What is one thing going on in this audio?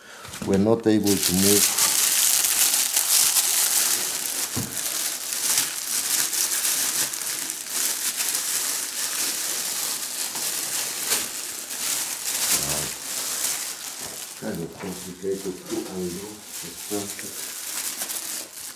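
Plastic wrapping crinkles and rustles close by.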